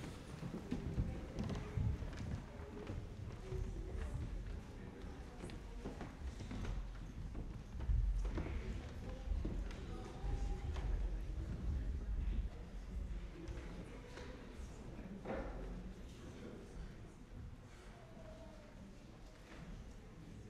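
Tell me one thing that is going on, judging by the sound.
A choir sings together in a large echoing hall, heard from a distance.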